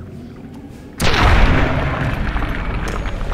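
A rifle fires sharply, with a rumbling echo after the shot.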